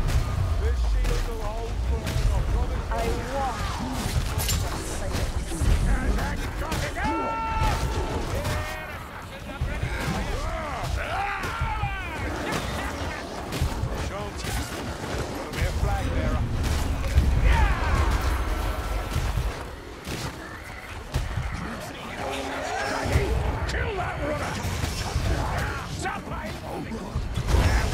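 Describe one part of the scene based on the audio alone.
Heavy axe blows thud and crunch into bodies, over and over.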